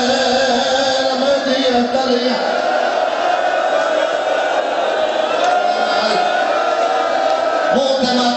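A man speaks loudly and passionately into a microphone, heard through loudspeakers.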